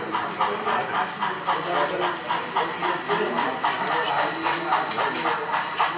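A model steam locomotive chuffs rhythmically as it rolls past.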